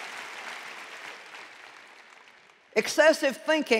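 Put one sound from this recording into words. An audience applauds in a large hall, and the applause fades.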